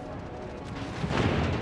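Heavy guns fire in a loud, booming burst.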